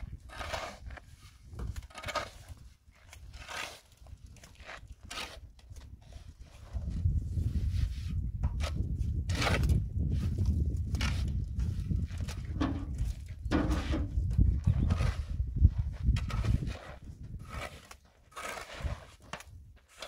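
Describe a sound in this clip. A shovel scrapes and digs into a pile of sand and cement.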